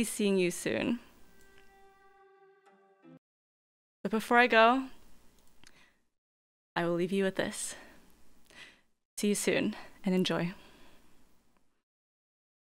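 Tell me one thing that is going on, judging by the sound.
A young woman speaks animatedly into a microphone in short bursts.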